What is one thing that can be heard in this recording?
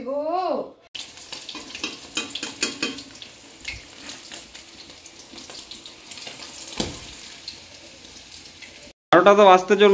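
Oil sizzles in a frying pan.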